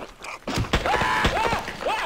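A crowbar thuds heavily against a creature's body.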